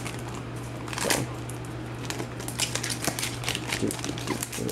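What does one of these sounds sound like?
A foil wrapper crinkles and rustles.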